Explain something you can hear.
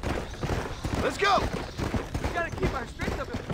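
A man speaks gruffly, close by.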